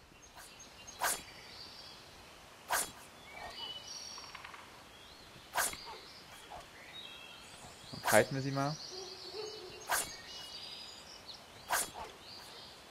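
Blades strike with sharp, swishing hits every second or two.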